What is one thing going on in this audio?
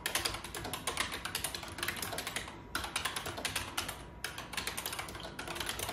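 Typewriter keys clatter rapidly as someone types, with brief pauses.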